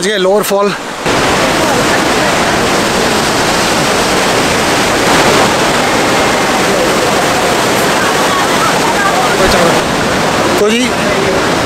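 A waterfall roars steadily, loud and close.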